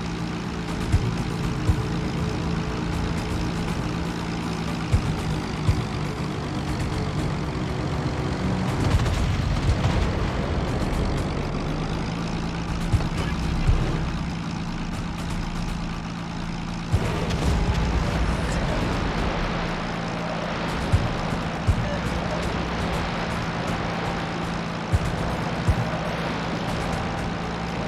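Aircraft engines drone steadily overhead.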